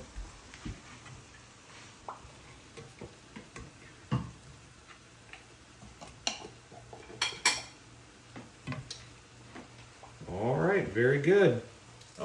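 A spoon clicks and scrapes against a pot.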